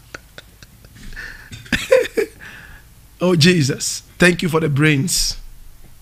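A man laughs heartily into a close microphone.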